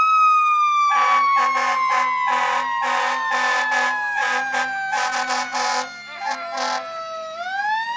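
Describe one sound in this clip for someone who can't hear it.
A fire truck blasts its air horn in short repeated bursts.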